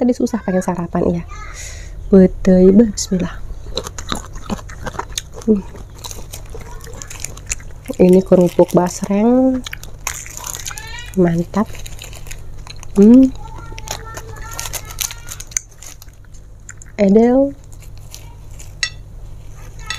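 Food rustles and crackles as fingers handle it.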